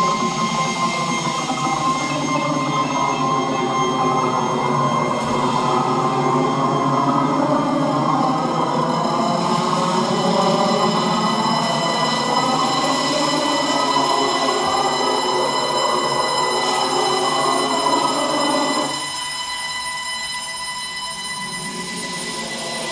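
Electronic tones drone and hum steadily through loudspeakers.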